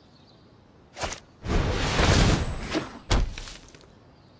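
A shimmering magical whoosh rings out.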